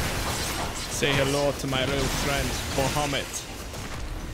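A young man speaks with animation into a microphone, close up.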